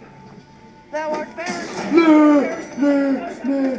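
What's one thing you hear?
A young man screams loudly in fright.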